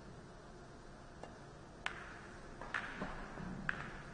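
A cue strikes a ball with a sharp tap.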